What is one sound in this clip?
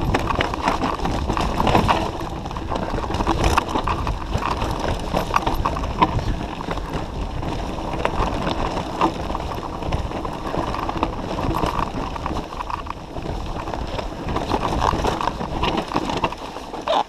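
Bicycle tyres crunch and rattle over a rough dirt trail.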